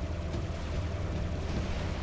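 A laser beam blasts with a loud crackling roar.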